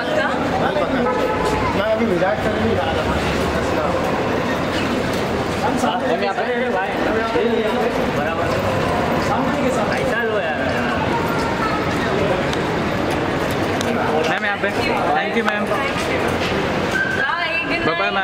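Men call out loudly close to the microphone.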